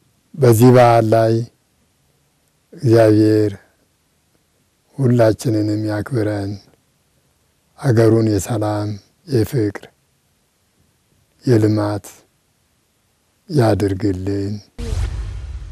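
A middle-aged man speaks calmly in short phrases with pauses, close to a microphone.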